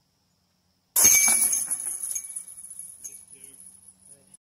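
A flying disc strikes metal chains with a loud jangling crash that rings and fades.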